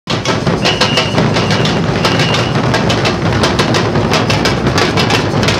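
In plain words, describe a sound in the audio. A group of drummers beats large drums in a fast, loud rhythm outdoors.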